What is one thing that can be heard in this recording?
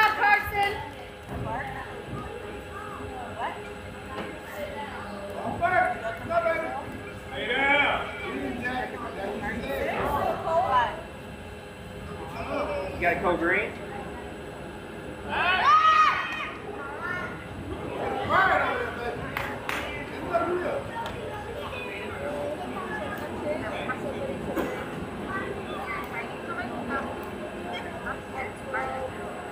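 Players and spectators shout and cheer outdoors, from a distance.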